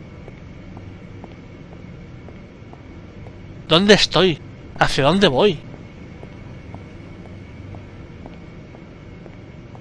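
Footsteps tap softly and evenly on a hard floor.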